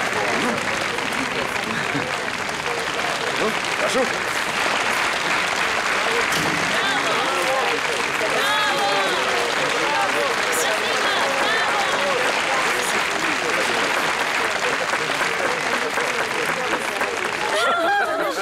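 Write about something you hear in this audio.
A crowd applauds steadily in a large hall.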